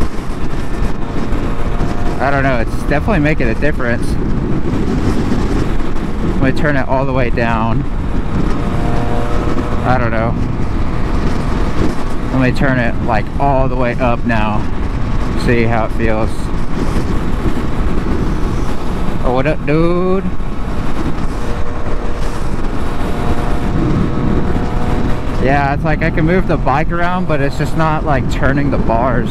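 A motorcycle engine hums and revs steadily at speed.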